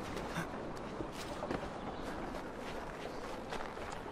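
A game character's footsteps thud on a snowy roof.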